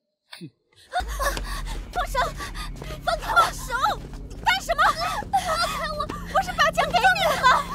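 Several young women shout and laugh excitedly.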